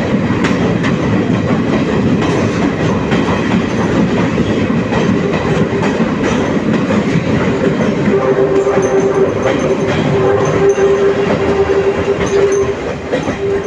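A passenger train roars through an echoing rock tunnel.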